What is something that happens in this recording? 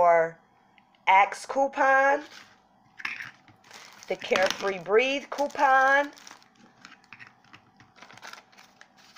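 Plastic packages rustle and tap softly as they are handled.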